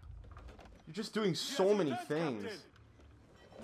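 A man shouts out loudly from a distance.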